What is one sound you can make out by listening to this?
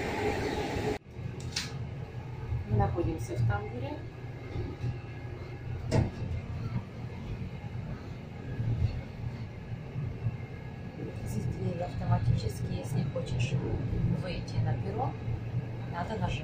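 A train rumbles steadily, heard from inside a carriage.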